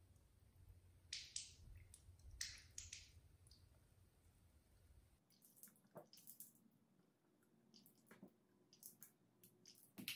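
Water trickles and splashes into a sink.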